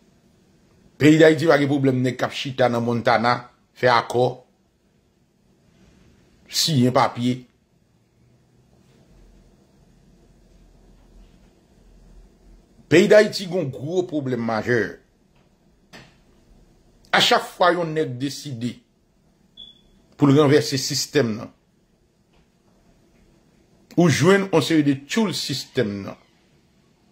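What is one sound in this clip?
A middle-aged man speaks calmly and close by, in short phrases with pauses between them.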